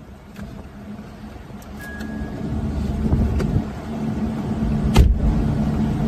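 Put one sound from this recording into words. A car door slams shut nearby.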